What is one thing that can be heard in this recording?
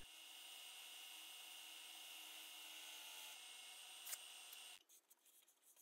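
A lathe motor whirs steadily and then stops.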